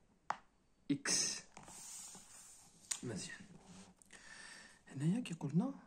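Paper rustles as a hand presses and smooths a page.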